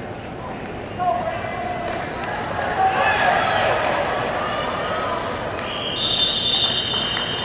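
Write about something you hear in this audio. A crowd of spectators cheers and shouts from nearby.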